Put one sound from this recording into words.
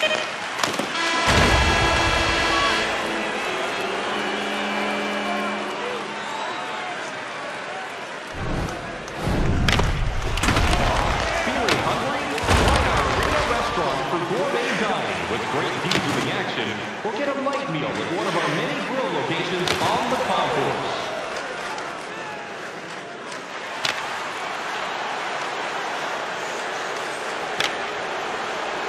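A crowd cheers and roars in a large echoing arena.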